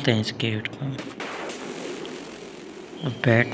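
A burst of flame roars briefly.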